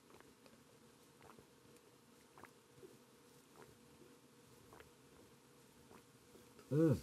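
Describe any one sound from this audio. A man gulps a drink in quick swallows.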